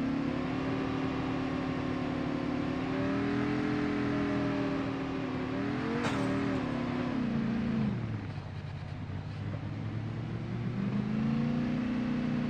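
A quad bike engine hums steadily, rising and dropping in pitch as it speeds up and slows down.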